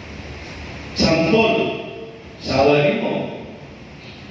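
A woman sings through a loudspeaker in a large echoing hall.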